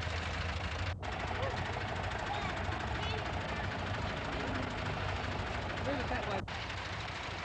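A man speaks nearby in a group of people.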